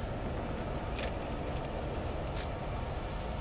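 Ammunition clicks as it is picked up.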